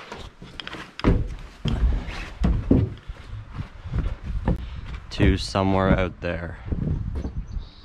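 Footsteps thump on wooden boards.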